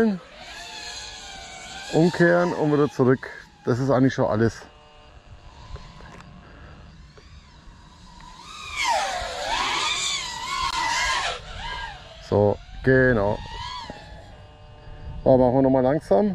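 A small drone's electric motors whine, rising and falling in pitch as it races low.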